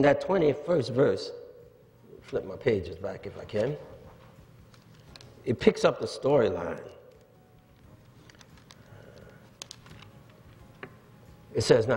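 An older man speaks slowly and deliberately through a microphone, with pauses, in a reverberant hall.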